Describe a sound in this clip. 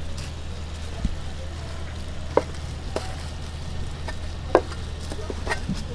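A knife taps and chops against a cutting board.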